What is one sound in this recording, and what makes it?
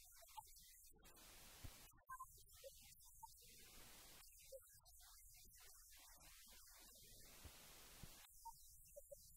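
An older woman speaks calmly and clearly in a large echoing room.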